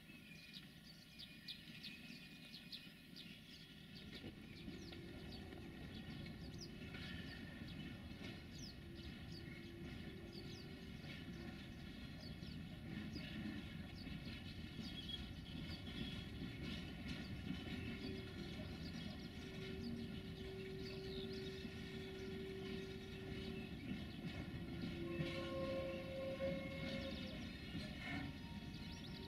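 A freight train rumbles along the tracks nearby.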